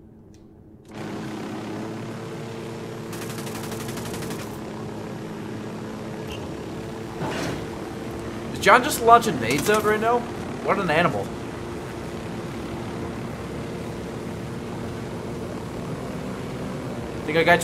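A helicopter's rotor hums steadily.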